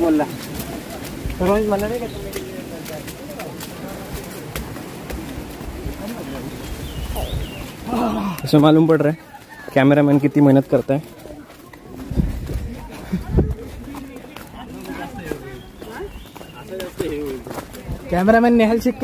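Footsteps crunch on a muddy dirt path.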